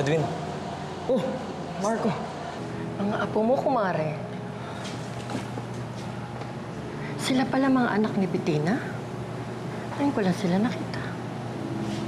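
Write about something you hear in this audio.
A middle-aged woman speaks tensely nearby.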